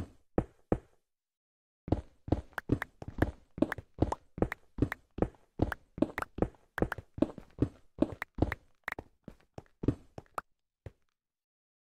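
A pickaxe chips rapidly at stone in quick repeated knocks.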